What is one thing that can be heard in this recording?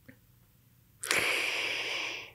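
A woman laughs softly into a microphone.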